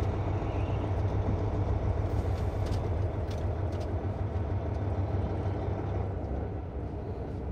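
Tyres crunch slowly over gravel.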